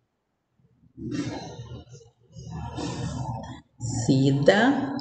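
A woman speaks calmly into a microphone, as if on an online call.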